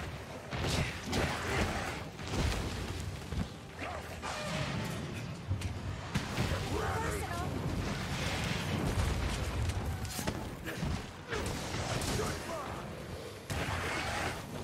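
A sword clangs and slashes against a monster.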